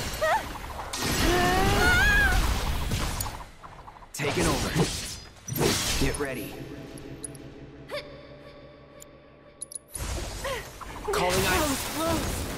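Magic blasts burst and crackle.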